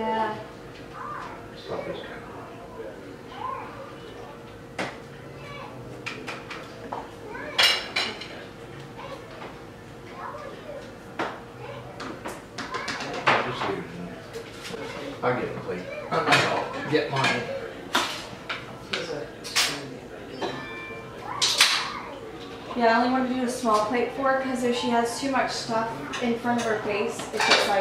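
Dishes and utensils clink and clatter.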